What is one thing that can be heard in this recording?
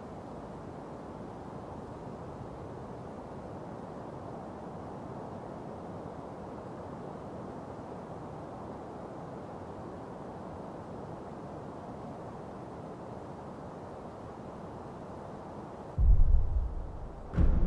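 Wind blows steadily through tall grass.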